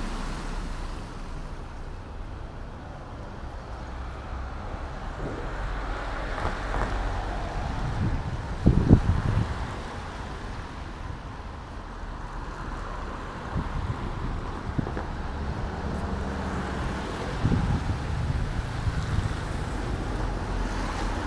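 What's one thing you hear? Traffic hums steadily on a wet street outdoors.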